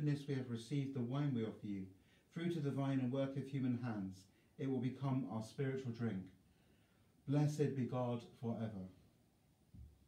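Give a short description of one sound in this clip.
A middle-aged man speaks calmly and slowly, close to a microphone.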